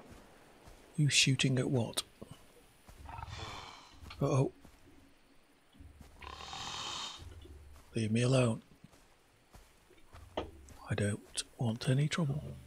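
A middle-aged man talks into a close microphone with animation.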